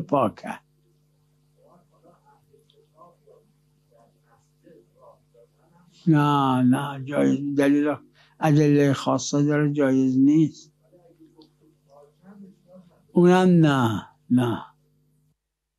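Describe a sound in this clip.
An elderly man speaks slowly and with emphasis into a microphone, with long pauses.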